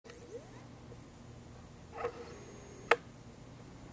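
A pinball machine clicks and chimes as its ball strikes targets.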